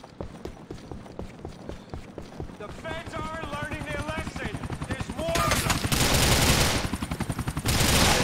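Helicopter rotor blades chop steadily overhead.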